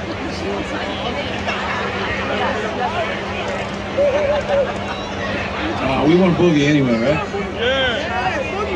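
A live rock band plays loudly outdoors through loudspeakers.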